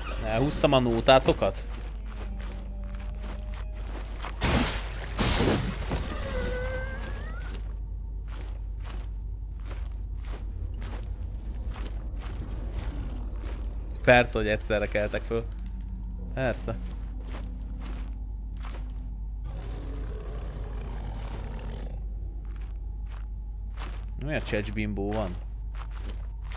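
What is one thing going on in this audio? A young man talks with animation close to a microphone.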